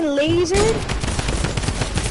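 Rapid gunfire cracks close by.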